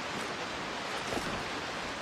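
A waterfall splashes steadily.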